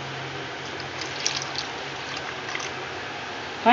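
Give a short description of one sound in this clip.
Liquid pours into a pot of sauce.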